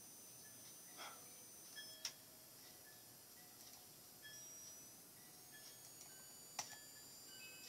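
A computer mouse clicks now and then.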